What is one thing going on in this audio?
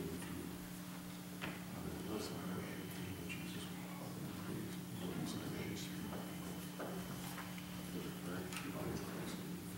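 An elderly man speaks softly to people close by.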